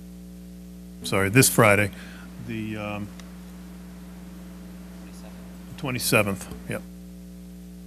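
A man speaks briefly through a microphone in short phrases.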